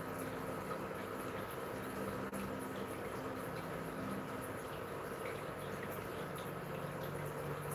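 A projector fan hums steadily.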